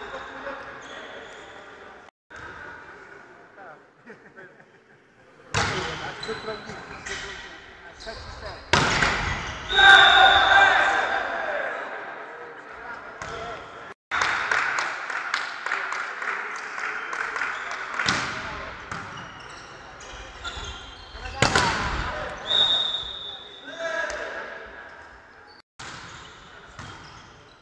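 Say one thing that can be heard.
Young men shout and call out to one another in an echoing hall.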